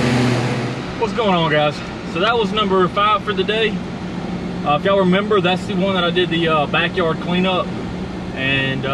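A man talks calmly and close up inside a car.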